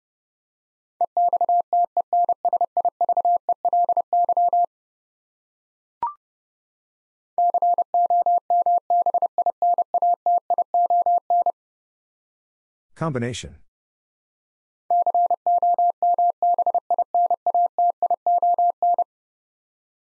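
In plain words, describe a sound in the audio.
A telegraph key taps out quick, steady beeps of code.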